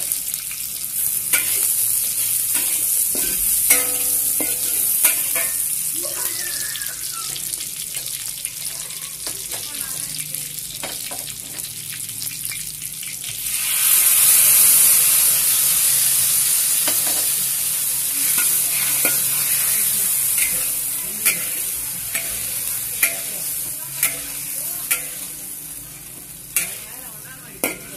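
Hot oil sizzles steadily in a pan.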